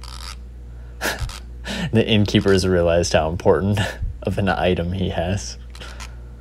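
A young man laughs softly.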